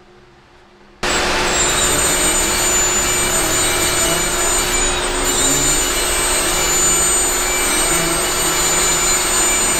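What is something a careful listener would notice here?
A power tool whirs loudly and steadily.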